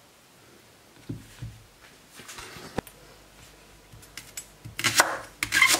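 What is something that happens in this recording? A knife chops through a vegetable onto a wooden board.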